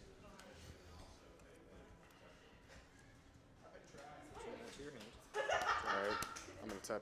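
Playing cards slide and tap softly on a table.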